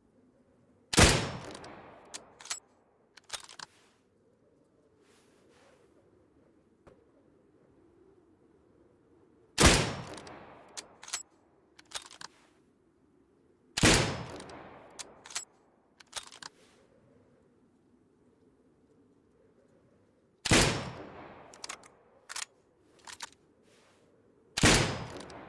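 A sniper rifle fires loud single shots that echo away.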